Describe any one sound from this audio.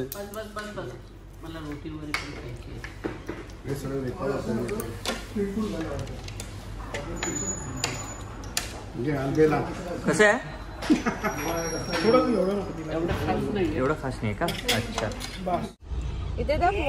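A serving spoon scrapes and clinks on a plate.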